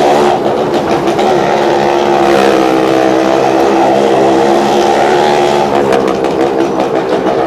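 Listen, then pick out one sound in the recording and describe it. Car engines roar loudly as they circle inside an echoing round wall.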